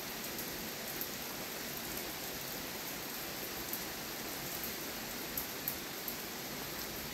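Small plastic and metal parts click softly as hands handle them.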